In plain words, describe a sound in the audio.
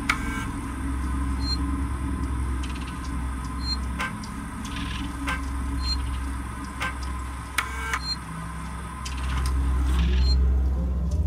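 A computer terminal beeps and clicks as menu items are selected.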